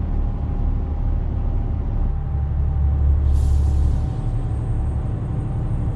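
A truck's diesel engine rumbles steadily as it drives.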